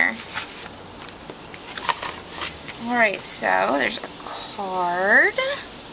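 Paper and a plastic sleeve rustle and crinkle as they are handled.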